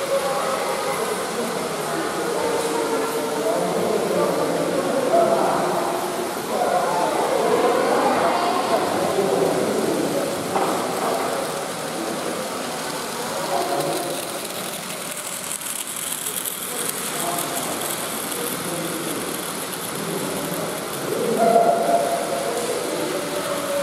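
Children and adults chatter in a large echoing hall.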